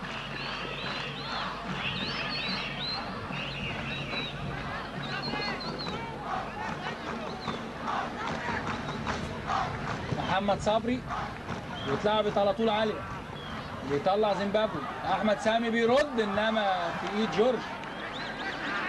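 A stadium crowd murmurs and cheers in the distance.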